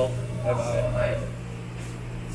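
A young man speaks close by in a calm voice.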